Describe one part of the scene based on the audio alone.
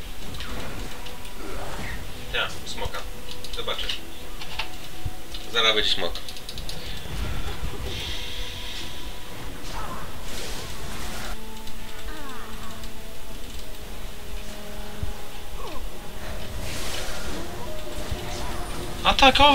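Magic blasts crackle and whoosh as fighters clash.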